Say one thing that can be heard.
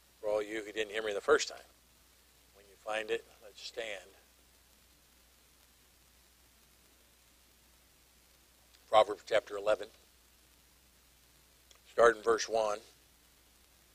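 A middle-aged man speaks calmly into a microphone in short bursts.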